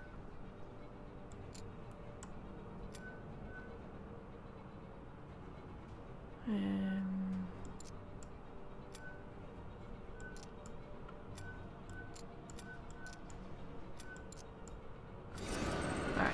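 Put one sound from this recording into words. Game pieces click softly as they are swapped.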